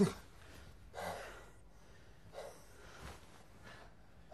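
A man gasps and groans close by.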